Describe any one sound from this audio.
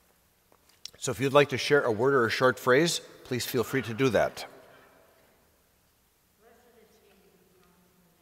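An elderly man speaks calmly in a large echoing hall.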